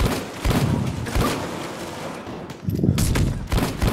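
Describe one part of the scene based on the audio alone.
Rapid gunshots crack loudly.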